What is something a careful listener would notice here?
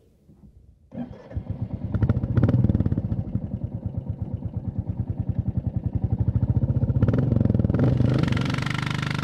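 A motorcycle engine roars steadily as the bike rides along.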